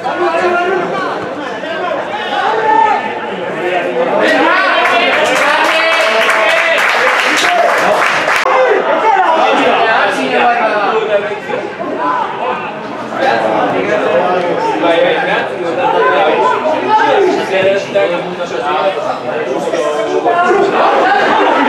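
Men shout and call out nearby, outdoors.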